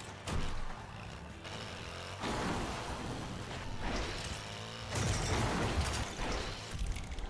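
A small quad bike engine whines steadily.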